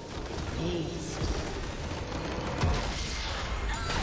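A large structure shatters with a booming crash.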